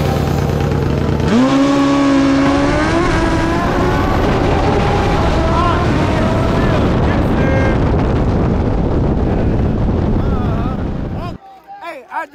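A motorcycle engine roars and revs up loudly as it accelerates.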